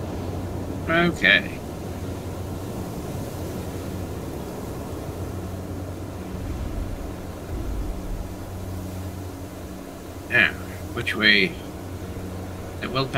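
A low hum drones steadily.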